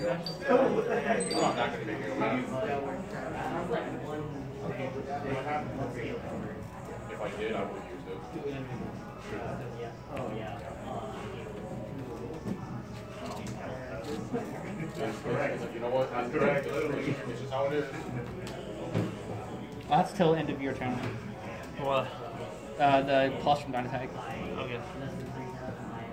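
Young men talk casually nearby.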